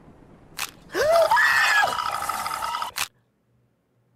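A young woman screams in fright close to a microphone.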